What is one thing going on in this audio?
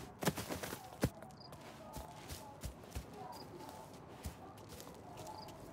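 Footsteps walk on hard ground.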